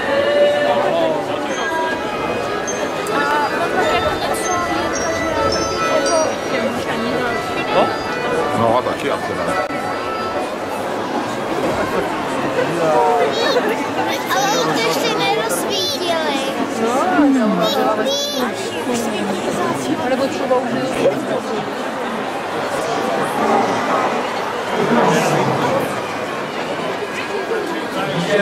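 A dense crowd chatters all around outdoors.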